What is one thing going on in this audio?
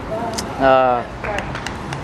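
A man shouts loudly outdoors, some distance away.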